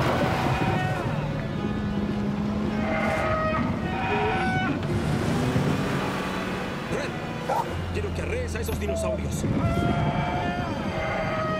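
Large animals bellow and honk loudly.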